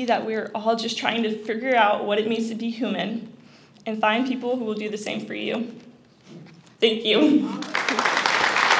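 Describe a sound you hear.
A young woman speaks calmly into a microphone, heard through a loudspeaker in a large room.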